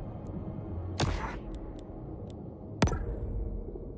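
A game menu makes short whooshing clicks as options change.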